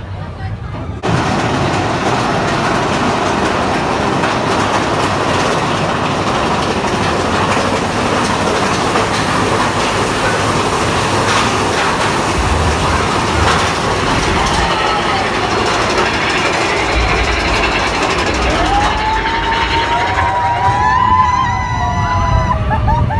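A ride car rumbles and rattles along a track.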